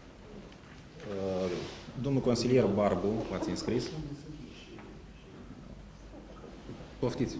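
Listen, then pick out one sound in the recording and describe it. A man speaks calmly in a room with a slight echo.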